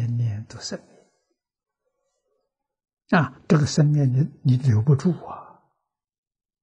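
An elderly man speaks calmly and warmly into a close microphone.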